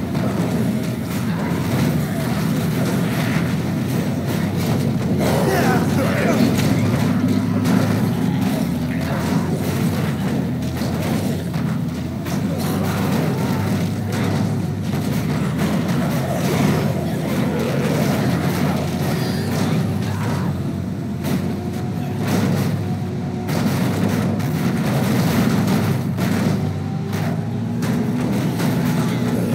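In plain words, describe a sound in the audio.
Zombies groan and moan around the car.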